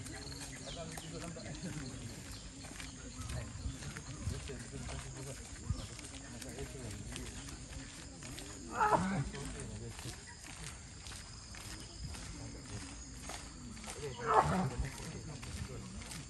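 Footsteps walk steadily on a paved path.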